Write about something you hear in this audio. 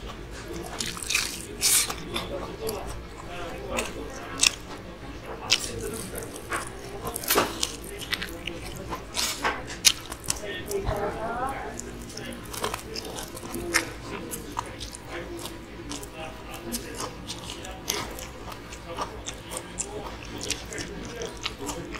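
A man bites into crispy fried food with loud crunches.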